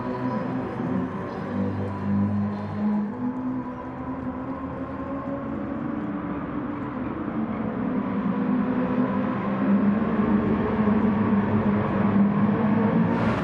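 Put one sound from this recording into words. Many racing car engines roar together and grow louder as they speed up.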